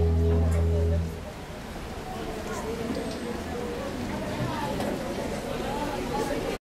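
Many children chatter and talk in a large echoing hall.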